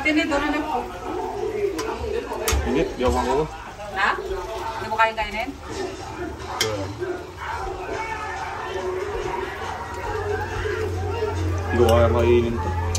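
A metal spoon scrapes and clinks against a steel pot.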